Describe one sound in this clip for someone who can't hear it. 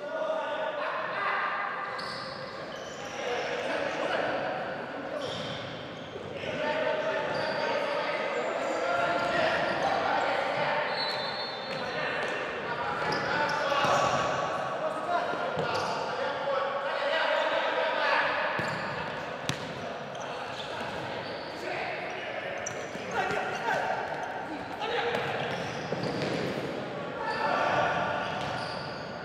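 Players shout to each other across a large echoing hall.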